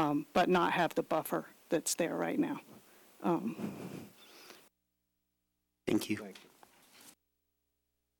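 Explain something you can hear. A woman speaks calmly into a microphone, heard through a public address system.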